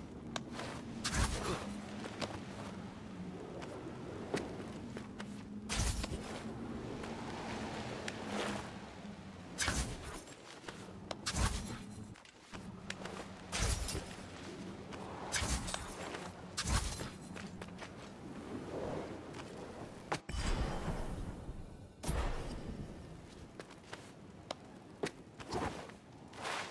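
Sword blows strike and slash with sharp impacts.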